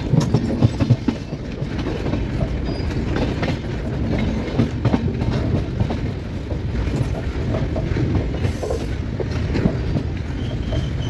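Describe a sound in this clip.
Train wheels rumble and clatter steadily over the rails.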